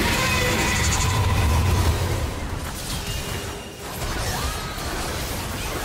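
Spell effects whoosh and crackle as game characters fight.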